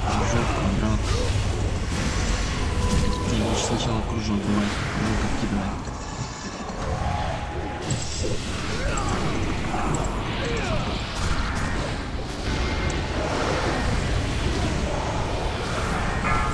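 Magic spells crackle and boom in a fantasy battle.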